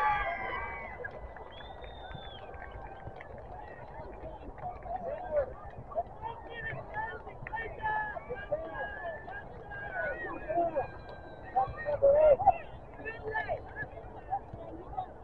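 Players and spectators shout across an open field.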